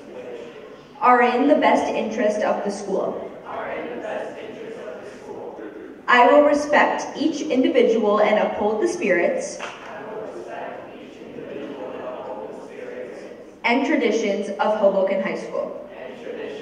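A group of teenagers recites an oath in unison in a large echoing hall.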